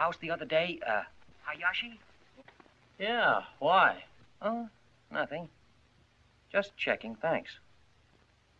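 A man speaks sharply and urgently into a telephone up close.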